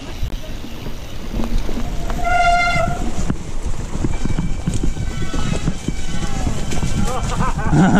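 A bicycle rattles and clatters over bumps and roots.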